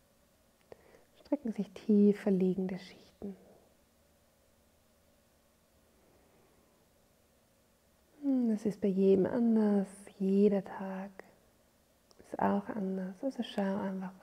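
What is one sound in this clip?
A woman speaks calmly and softly, close to the microphone.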